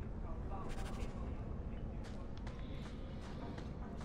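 Armoured footsteps clank.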